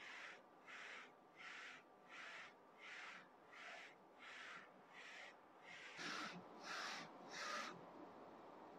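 A printer's carriage whirs back and forth in short, regular bursts.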